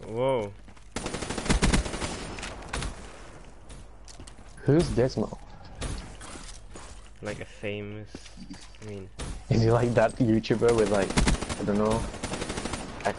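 A rapid-fire gun rattles in quick bursts.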